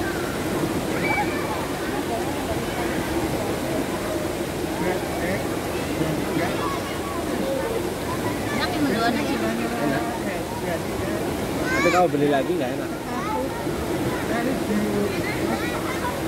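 A crowd chatters and calls out in the background, outdoors.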